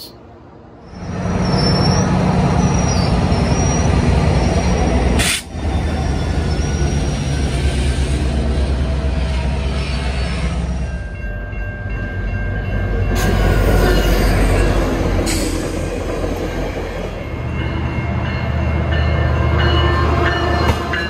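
A train's wheels clatter over the rails.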